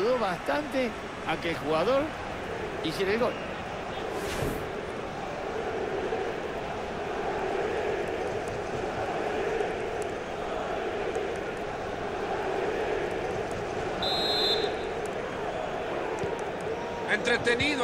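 A large crowd cheers and roars loudly.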